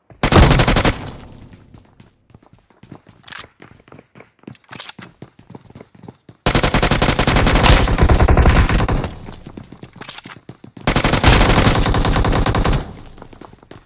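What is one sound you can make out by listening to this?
Rapid automatic gunfire rattles in loud bursts.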